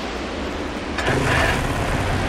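An off-road quad bike engine rumbles.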